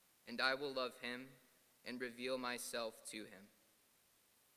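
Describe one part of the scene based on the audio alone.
A man speaks calmly into a microphone in an echoing hall.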